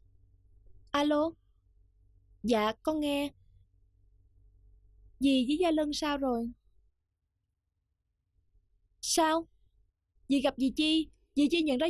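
A young woman talks on a phone in short, tense phrases.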